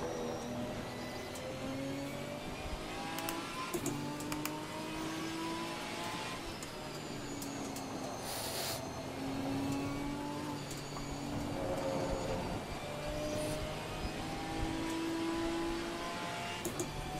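Rain patters steadily on the car.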